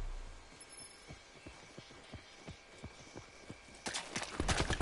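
Footsteps thud on the ground.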